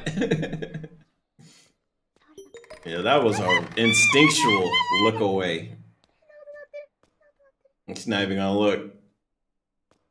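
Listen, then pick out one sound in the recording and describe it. A young man talks and laughs close to a microphone.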